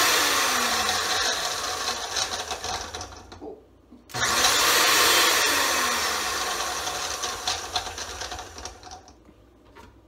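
A blender whirs loudly, stops briefly, then whirs again and winds down.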